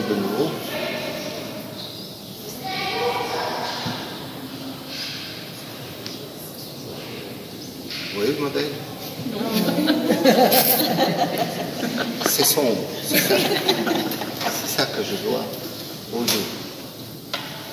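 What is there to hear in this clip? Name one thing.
An elderly man talks calmly close by.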